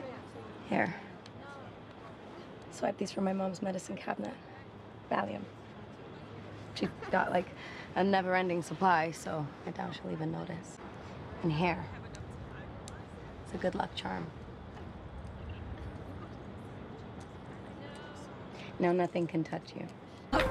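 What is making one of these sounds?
A young woman speaks quietly and closely.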